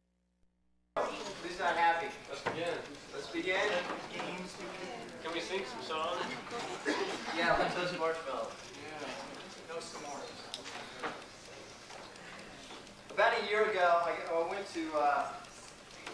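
A man speaks to an audience in a large echoing hall, heard from a distance.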